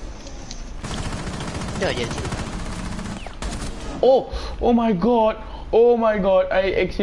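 Gunshots ring out in short bursts.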